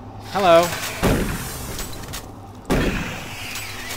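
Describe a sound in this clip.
A shotgun fires with heavy booming blasts.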